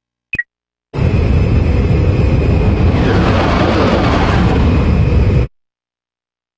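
A spaceship engine roars loudly as the ship takes off.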